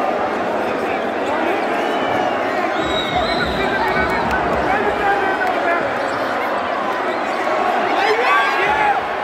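A large crowd cheers and chatters loudly in a big echoing arena.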